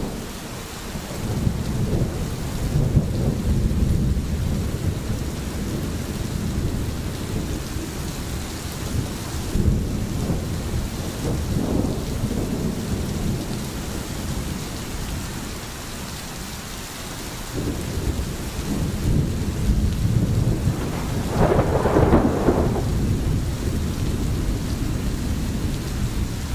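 Rain falls steadily outdoors.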